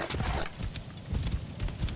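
A horse's hooves clop on sand.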